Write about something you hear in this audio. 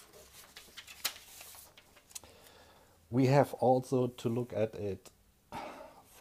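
Paper rustles as hands handle a sheet.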